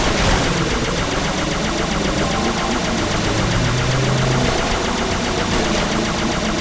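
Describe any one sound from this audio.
A hovering vehicle's engine hums steadily.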